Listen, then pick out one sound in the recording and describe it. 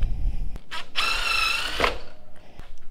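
A cordless drill whirs briefly at high speed.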